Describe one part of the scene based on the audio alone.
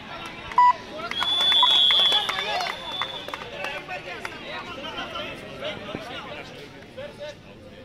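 A crowd cheers and shouts loudly outdoors.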